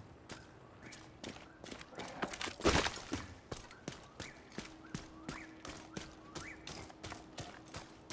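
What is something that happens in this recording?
Footsteps crunch steadily over debris and gravel.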